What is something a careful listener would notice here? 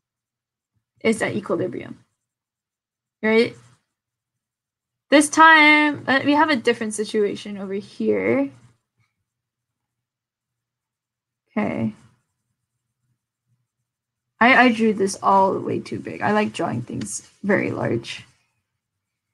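A young woman explains calmly into a close microphone, in short bursts with pauses.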